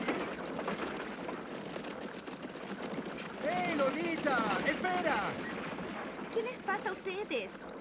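Carriage wheels rumble and creak.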